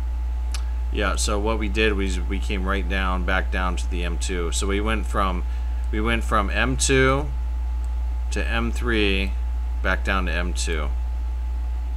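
A young man speaks calmly and closely into a microphone.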